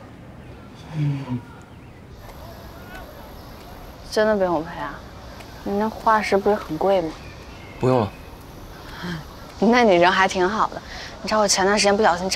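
A young woman speaks lightly and cheerfully, close by.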